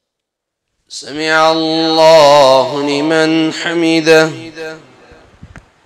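A man chants a long call through a microphone, echoing in a large hall.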